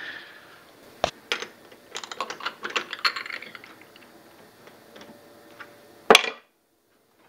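Metal tools clink and knock against a lathe chuck.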